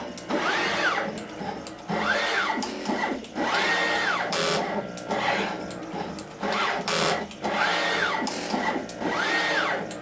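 A machine whirs and clicks as its head moves quickly back and forth.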